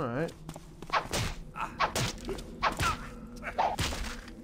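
A sword strikes with sharp hits.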